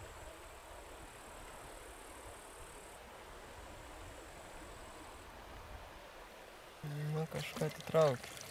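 River water laps softly outdoors.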